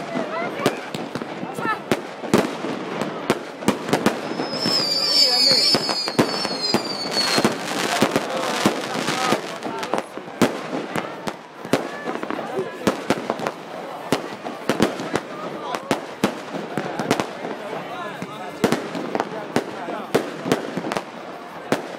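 Fireworks bang and crackle loudly outdoors.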